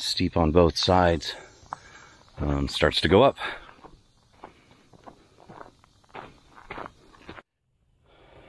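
Footsteps crunch on a dirt trail.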